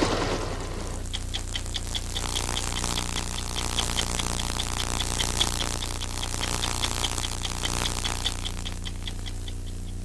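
A stopwatch ticks steadily.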